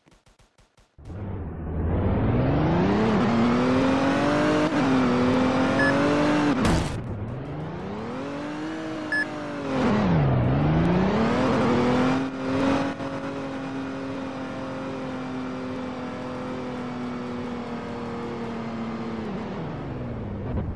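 A car engine revs up and down as the car speeds up and slows down.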